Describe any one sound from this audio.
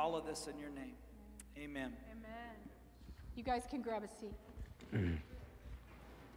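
A man sings into a microphone in a large hall.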